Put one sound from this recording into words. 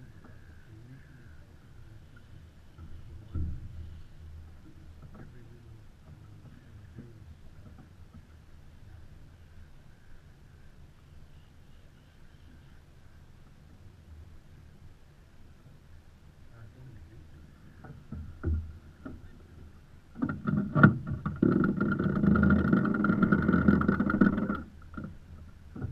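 Water laps gently against a boat's hull.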